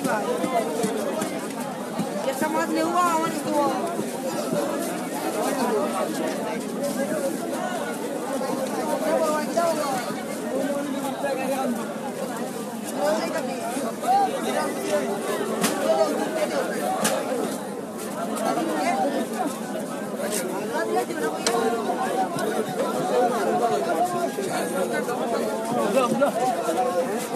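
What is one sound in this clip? Fish are slapped and handled.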